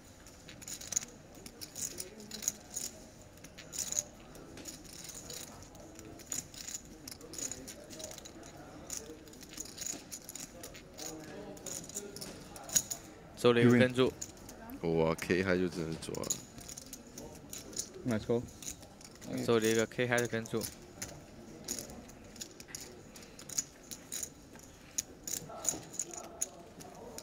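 Poker chips click and clatter as they are shuffled in a hand.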